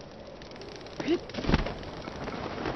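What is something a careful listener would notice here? A glider cloth snaps open with a sudden whoosh.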